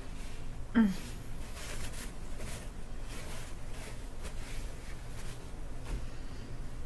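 A paper napkin rustles and crinkles in a woman's hands.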